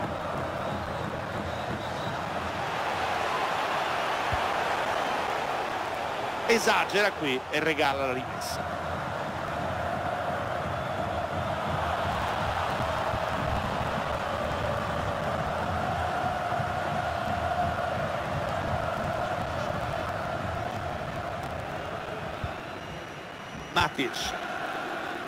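A stadium crowd roars steadily throughout.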